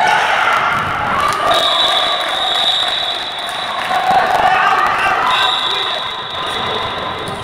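A crowd of spectators cheers and chatters in a large echoing hall.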